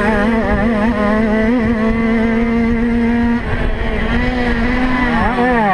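A dirt bike engine roars loudly up close, revving and shifting gears.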